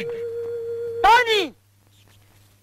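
An elderly man shouts loudly.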